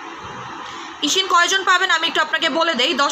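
A young woman speaks close to a microphone.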